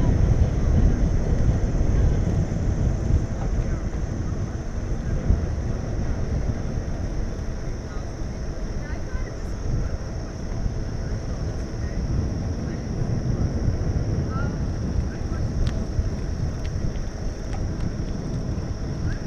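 Wind rumbles loudly against a moving bicycle.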